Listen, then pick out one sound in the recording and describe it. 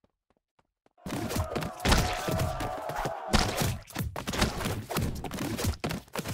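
Splatting game sounds burst loudly during a brawl.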